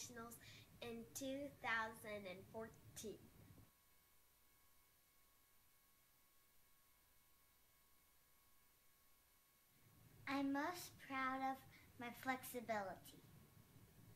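A young girl speaks cheerfully close by.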